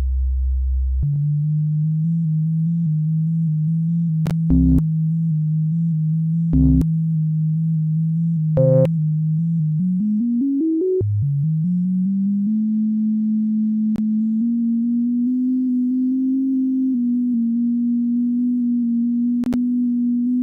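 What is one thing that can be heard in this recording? A low electronic racing car engine drones steadily.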